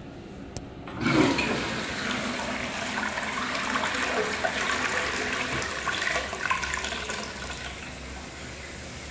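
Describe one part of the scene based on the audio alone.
A toilet flushes with a loud rush of swirling water.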